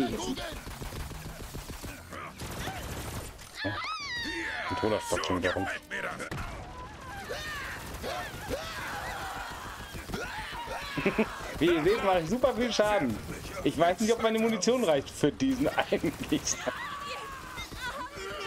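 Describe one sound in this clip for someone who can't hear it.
Two young men talk with animation close to a microphone.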